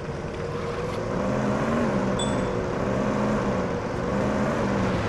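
A car engine hums steadily and rises in pitch as the vehicle speeds up.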